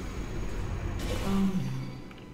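A sci-fi energy gun fires with a sharp electric zap.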